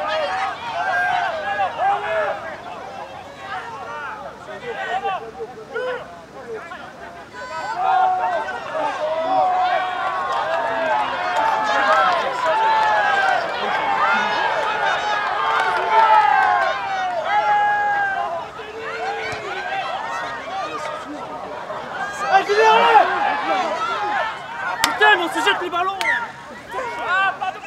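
A crowd murmurs and cheers outdoors.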